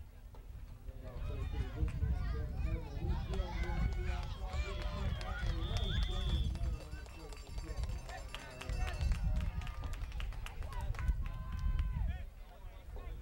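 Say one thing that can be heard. A crowd of spectators cheers and shouts outdoors from a distance.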